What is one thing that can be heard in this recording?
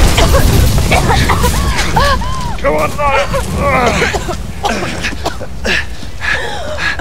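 A young woman gasps and sobs.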